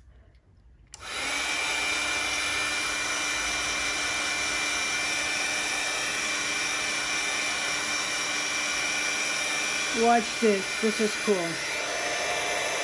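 A heat gun blows with a steady loud whirring hiss.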